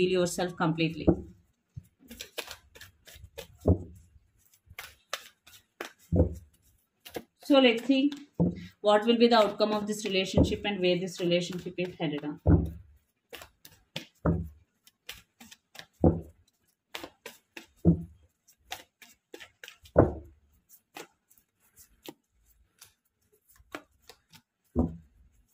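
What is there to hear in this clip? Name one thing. A deck of cards is shuffled by hand, with soft slaps and riffles.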